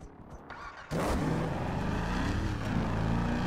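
A car engine revs.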